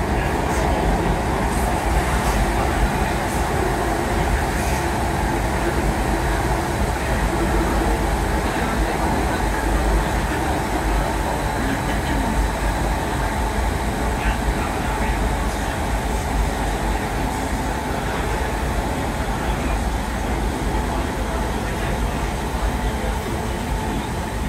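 A train rumbles and rattles steadily along the track.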